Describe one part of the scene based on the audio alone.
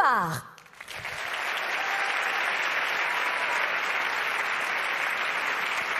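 A large audience applauds steadily in a big hall.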